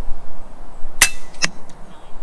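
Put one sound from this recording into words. An air rifle fires a single sharp shot.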